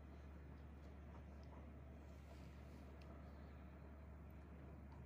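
A blade scrapes softly against skin.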